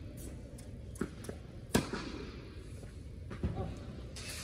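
A tennis racket strikes a ball with a sharp pop in a large echoing hall.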